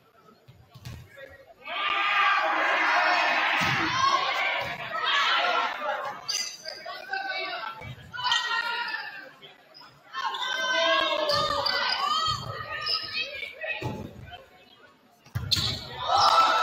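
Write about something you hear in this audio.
A volleyball is struck with dull thumps.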